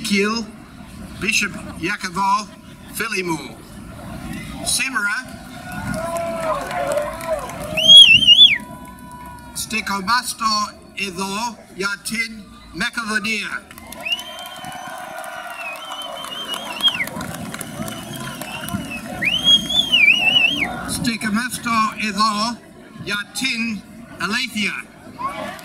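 A large crowd of men and women talks and calls out outdoors.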